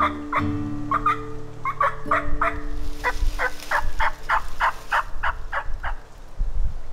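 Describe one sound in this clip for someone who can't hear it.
A man yelps out a rapid series of high, bird-like calls close by.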